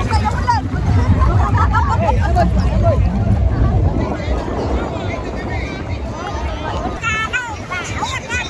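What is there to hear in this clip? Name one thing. Several women and children shout and laugh nearby.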